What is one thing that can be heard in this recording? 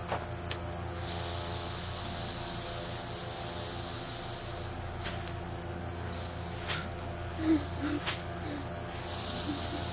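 Dry hay rustles and crackles close by.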